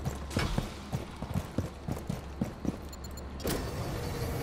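Quick footsteps tread on a hard floor.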